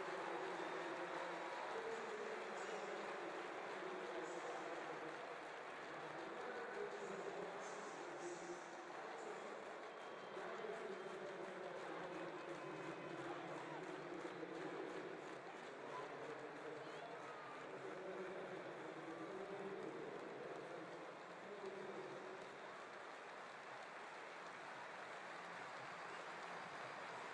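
A large stadium crowd murmurs and chatters steadily, heard from high up in a vast open arena.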